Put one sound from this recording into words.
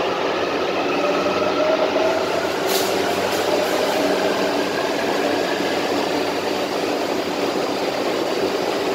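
A train rolls past with a steady rumble and whine, then pulls away.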